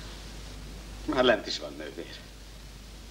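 A man speaks briefly and quietly, close by.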